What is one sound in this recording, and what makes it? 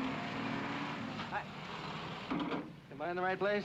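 A jeep engine rumbles nearby.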